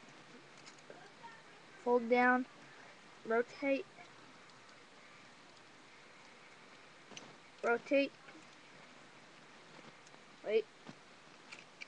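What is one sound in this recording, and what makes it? Plastic toy pieces click and rustle softly as hands move them about.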